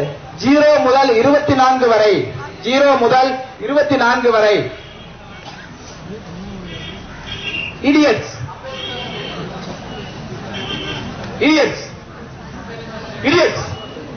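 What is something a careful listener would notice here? A man speaks through a microphone and loudspeaker, lecturing outdoors in bursts with pauses.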